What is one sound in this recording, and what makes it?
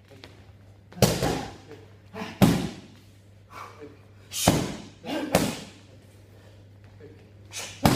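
Boxing gloves thud sharply against punch mitts in quick bursts.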